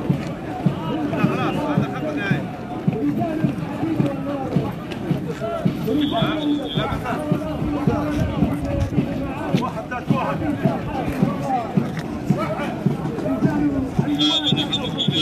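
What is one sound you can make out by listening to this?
Many boots stamp on pavement in a steady marching rhythm.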